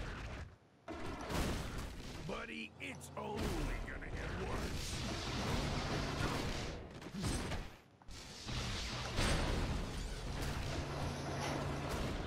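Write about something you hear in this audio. Fiery blasts burst and crackle in a fight.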